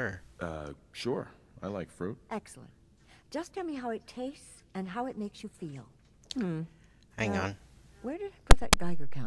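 An elderly woman speaks calmly and warmly.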